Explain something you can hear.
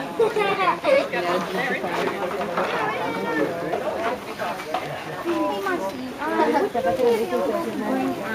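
Young children chatter and call out excitedly close by.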